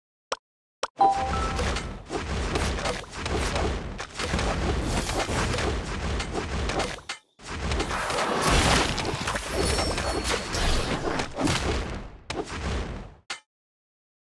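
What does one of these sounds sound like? Game battle sounds clash and crackle rapidly, with hits and spell blasts.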